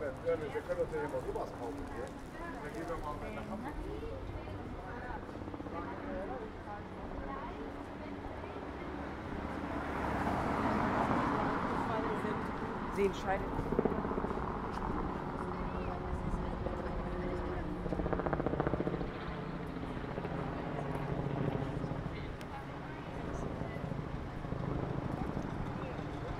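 Men and women chatter nearby outdoors.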